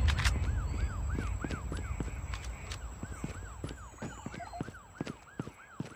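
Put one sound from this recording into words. Gunshots crack in a quick, even rhythm.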